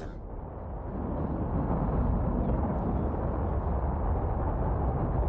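A rocket thruster roars as a pod lands.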